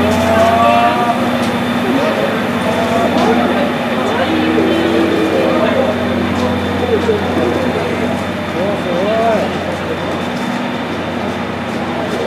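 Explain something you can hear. A low engine hum drones steadily.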